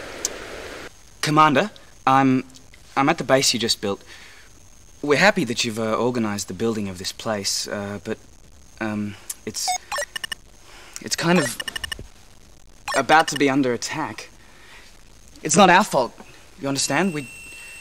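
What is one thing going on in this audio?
A young man speaks to the listener with animation, heard through a radio-like speaker.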